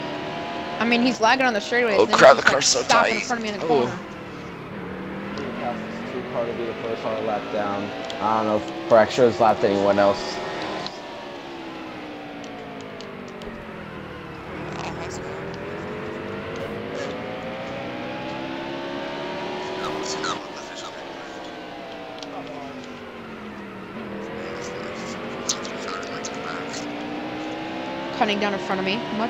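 A race car engine roars steadily, its pitch rising and falling as it speeds up and slows through the turns.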